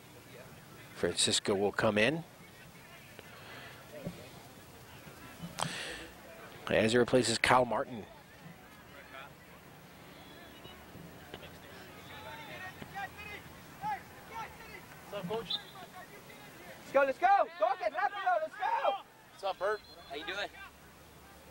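Adult spectators shout and cheer loudly nearby, outdoors.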